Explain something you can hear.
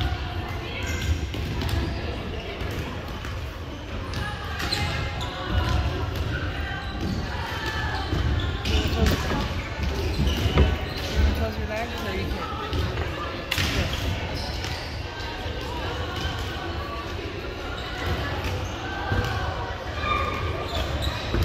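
Young women chatter and call out across a large echoing gym.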